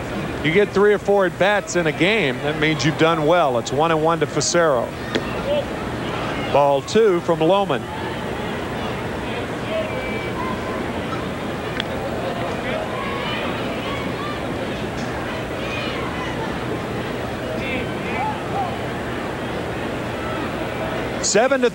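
A stadium crowd murmurs steadily in a large open space.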